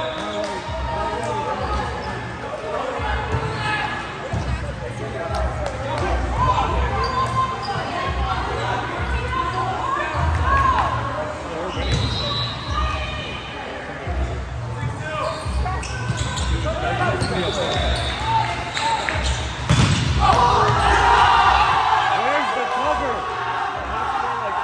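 Many young men and women chatter and call out throughout a large echoing hall.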